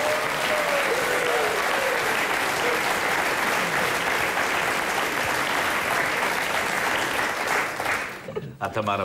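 Men laugh heartily.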